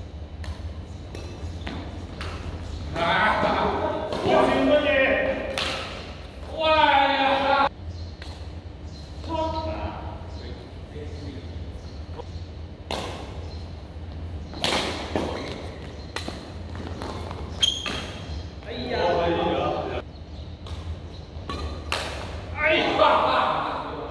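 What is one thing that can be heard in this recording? Rackets strike a shuttlecock in a sharp back-and-forth rally.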